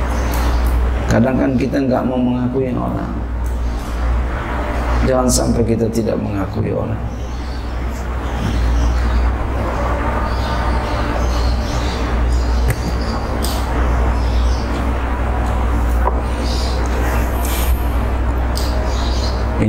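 A middle-aged man speaks calmly into a microphone, heard through a loudspeaker.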